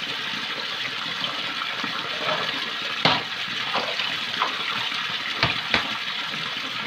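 A plastic basin knocks and scrapes as it is rinsed.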